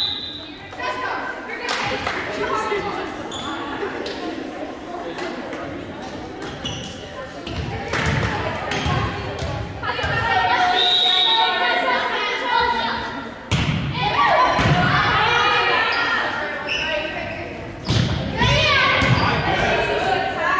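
Volleyball players shout and call to each other in a large echoing gym.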